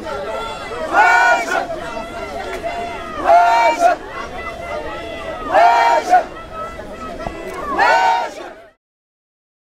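Many people in a crowd shout and murmur around the chanting.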